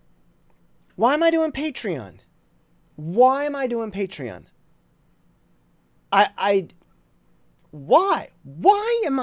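A man speaks expressively into a close microphone, in short bursts with pauses.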